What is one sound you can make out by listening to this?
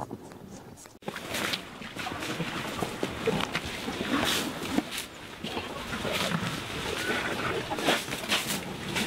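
Elephants rustle and snap branches close by.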